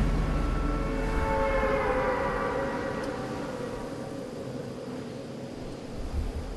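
Air rushes past in a steady roar during a fall.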